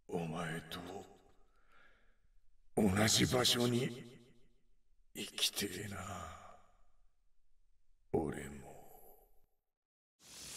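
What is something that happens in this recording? A young woman speaks weakly in halting phrases.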